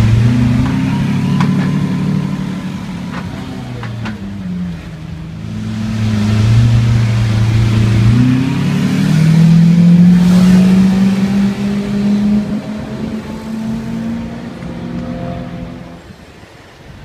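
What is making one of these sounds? A sports car engine rumbles loudly and revs as the car pulls away.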